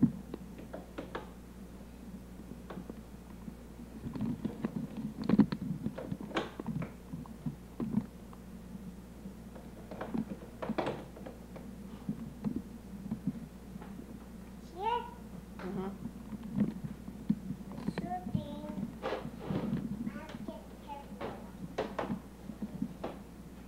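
Plastic toy parts knock and clatter.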